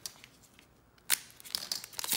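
A foil wrapper crinkles and is cut open.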